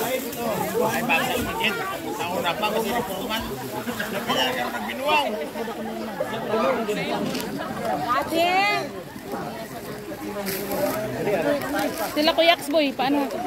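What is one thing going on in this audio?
A crowd of women and children chatter and call out close by, outdoors.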